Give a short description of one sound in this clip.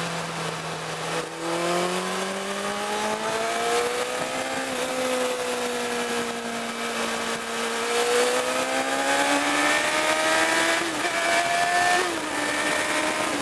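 Wind rushes past a moving vehicle.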